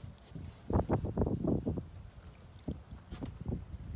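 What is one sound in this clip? Water splashes against a boat's side.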